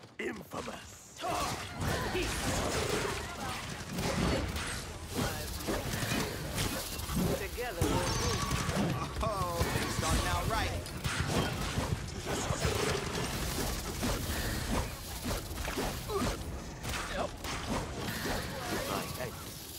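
Game weapons fire in rapid bursts of blasts and zaps.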